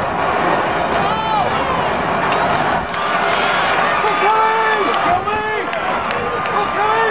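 Spectators shout encouragement loudly.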